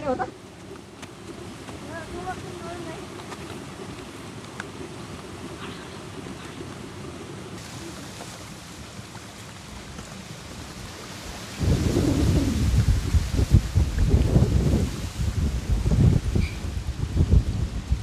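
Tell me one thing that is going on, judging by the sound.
Footsteps scuff on a dirt path.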